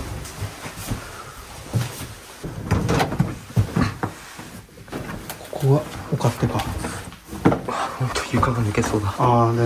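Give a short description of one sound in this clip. Footsteps creak on old wooden floorboards.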